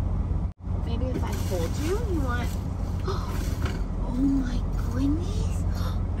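A young woman talks softly and playfully up close in a high, sing-song voice.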